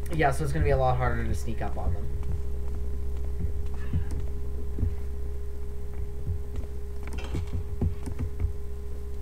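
Footsteps thud steadily on stone.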